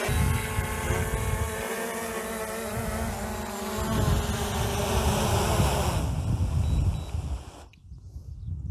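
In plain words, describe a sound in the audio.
A drone's propellers whir with a high buzz close by, then spin down.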